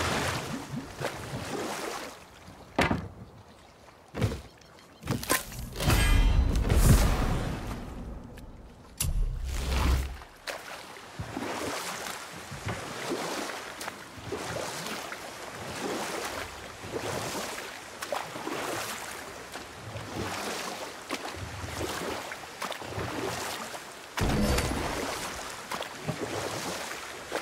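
Oars splash rhythmically through water as a boat is rowed.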